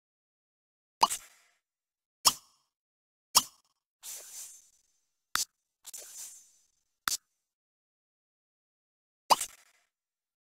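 Short interface clicks and chimes sound as menus open and close.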